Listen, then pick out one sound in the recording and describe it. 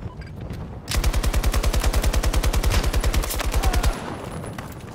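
A machine gun fires in a rapid burst of loud shots.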